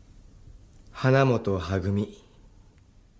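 A man speaks calmly and briefly, close by.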